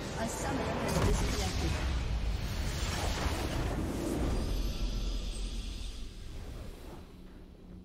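A game's victory fanfare swells with a whooshing burst.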